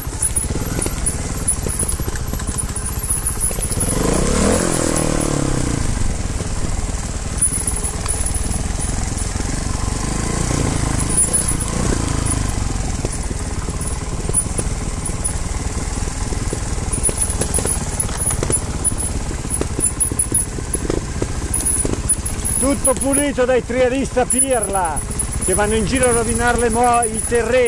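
Dirt bike engines rumble and rev up and down close by.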